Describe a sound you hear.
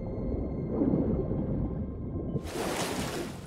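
Water rumbles and churns with a deep, muffled sound, as if heard underwater.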